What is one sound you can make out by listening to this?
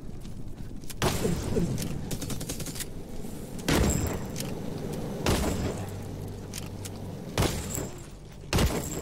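Heavy blows thud and crash in quick bursts.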